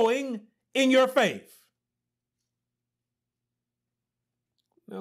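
A man preaches with animation, close by.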